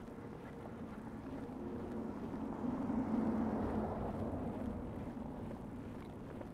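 A car drives past slowly over snow, its tyres crunching.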